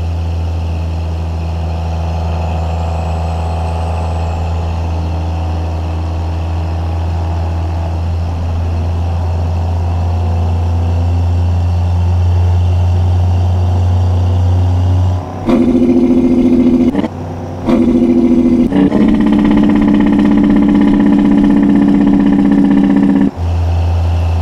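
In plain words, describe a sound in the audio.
A heavy truck engine drones steadily as the truck drives along a road.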